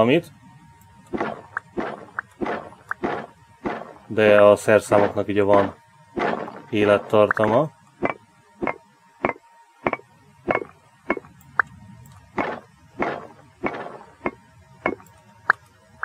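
A pickaxe chips at stone in short, regular knocks.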